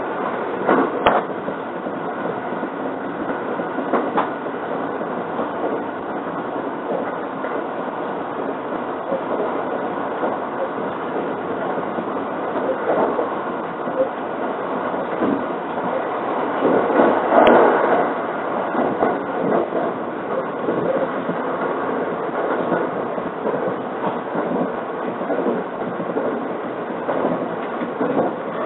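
A vehicle rumbles steadily as it travels.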